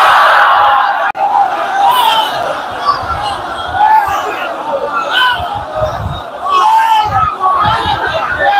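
A young man chants loudly through a microphone in a large echoing hall.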